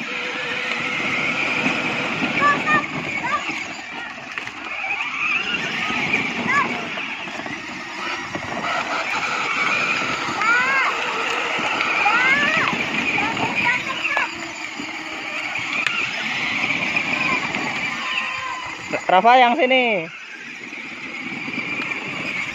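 A small electric motor whines steadily as a toy car drives along.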